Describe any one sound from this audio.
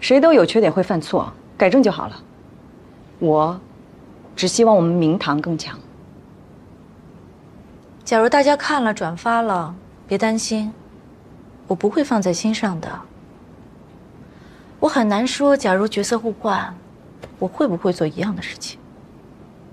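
A young woman speaks calmly and firmly, close by.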